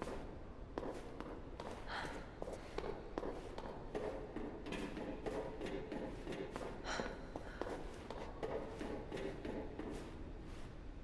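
High-heeled footsteps click on a hard floor and metal stairs.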